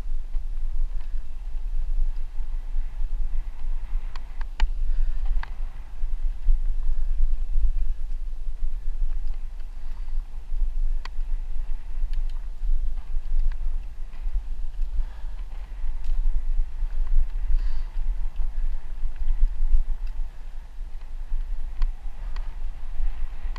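Bicycle tyres roll and crunch over a bumpy dirt track.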